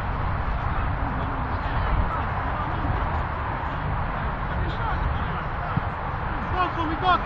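Men call out to each other across the field from a distance.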